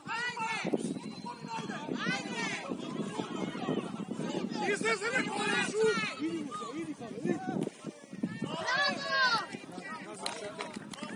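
Young male players shout to each other across an open field.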